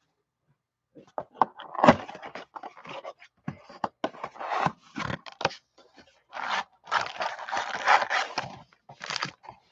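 Cardboard rustles and tears as a box is opened.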